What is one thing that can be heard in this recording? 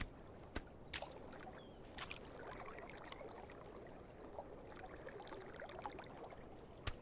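Water splashes gently as a goose paddles along.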